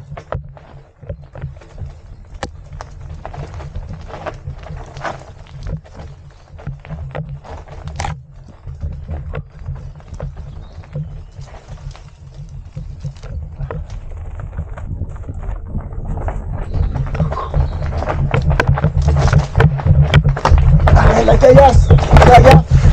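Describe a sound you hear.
Wind rumbles against a helmet, growing louder as the bike speeds up.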